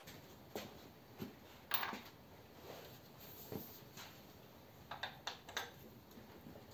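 A metal tool clinks and clanks against an engine block.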